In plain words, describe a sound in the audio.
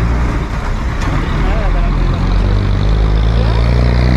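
A bus engine rumbles as it drives past close by.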